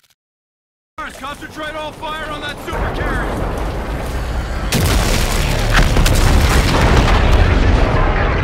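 Laser guns fire in rapid bursts.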